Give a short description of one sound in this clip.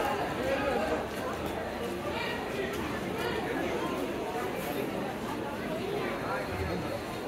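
A crowd of shoppers murmurs and chatters nearby.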